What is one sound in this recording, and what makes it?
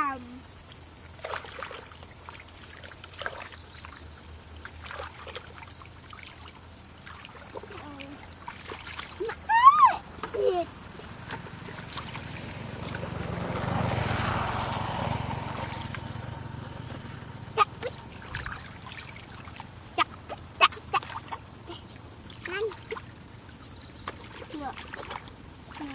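Muddy water splashes and sloshes as hands dig through it.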